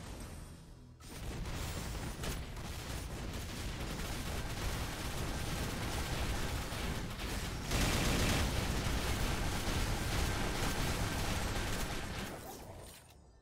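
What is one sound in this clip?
Game attack effects crash and burst rapidly.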